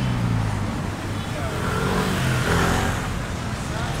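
A motor scooter passes close by.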